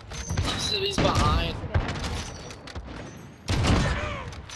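A sniper rifle fires with a loud, sharp crack.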